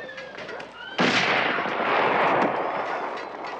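A volley of rifle shots booms out with a long rumbling echo.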